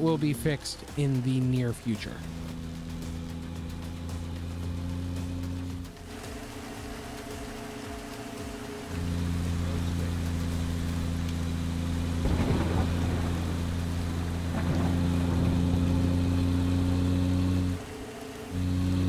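A truck engine hums steadily and rises and falls in pitch as the truck drives along.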